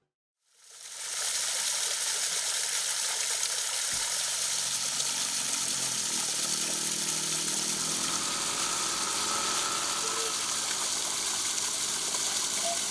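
Water rushes and splashes steadily over rocks.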